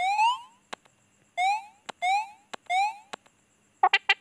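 Quick rising chirps play.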